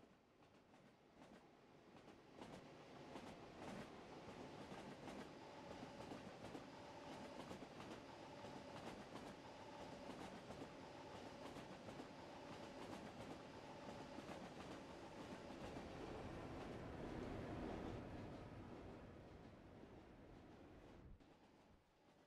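An electric train rumbles past close by with a steady hum.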